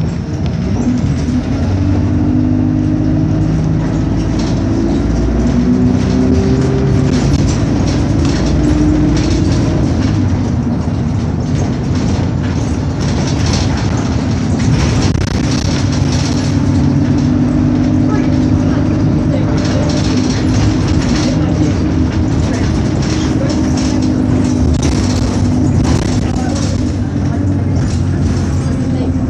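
A bus engine hums and drones steadily while driving.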